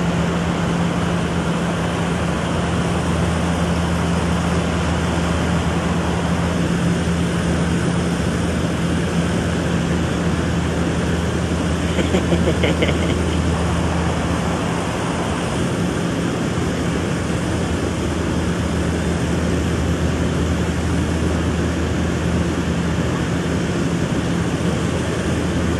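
A river's water rushes and churns loudly.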